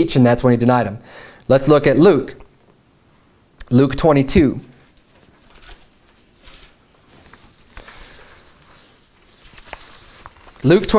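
A man speaks in a slow, emphatic voice, with long pauses.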